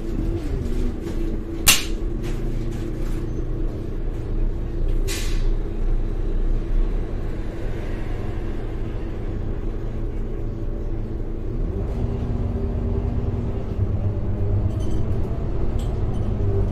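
A bus engine hums and rumbles steadily while the bus drives.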